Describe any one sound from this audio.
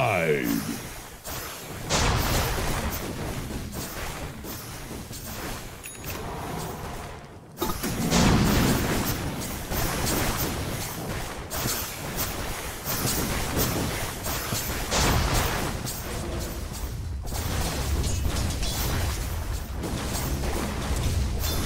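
Fighting game figures clash with sharp hits and crackling spell sounds.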